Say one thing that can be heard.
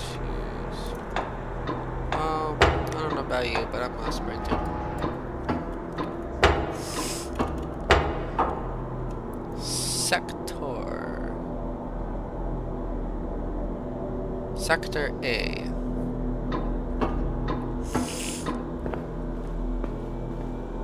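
Footsteps clank on a metal walkway.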